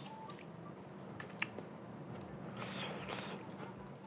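A man slurps and chews food.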